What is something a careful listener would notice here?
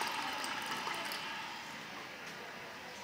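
Water trickles into a toilet cistern.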